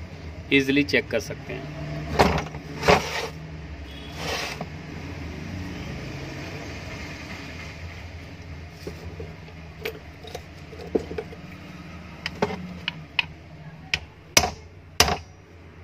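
An electric motor is handled and knocks against a hard surface.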